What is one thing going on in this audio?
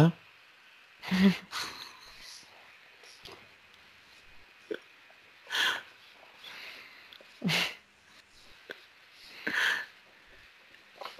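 A man laughs heartily over an online call.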